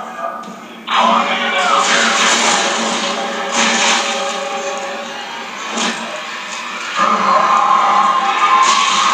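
A blast roars and rumbles on.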